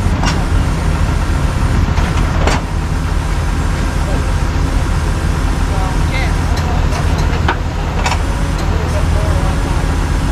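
A pickup truck's engine idles nearby with a steady low rumble.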